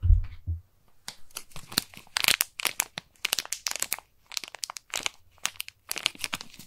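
A wrapper crackles and crinkles sharply close by.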